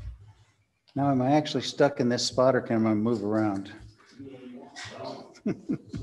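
An older man speaks calmly through a microphone.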